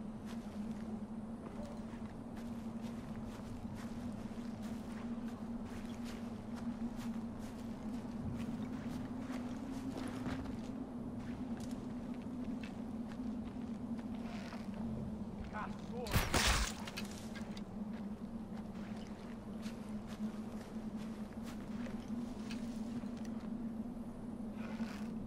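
Footsteps rustle through dry grass and brush.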